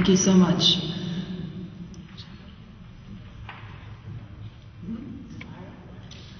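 A young woman sings softly into a microphone.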